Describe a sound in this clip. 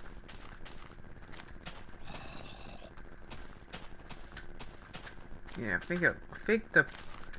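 Footsteps crunch softly on grass at a steady walking pace.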